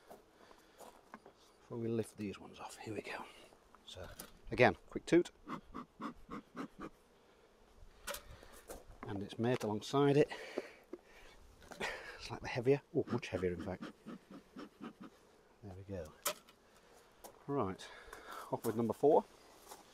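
Wooden beehive parts knock and clatter as they are handled.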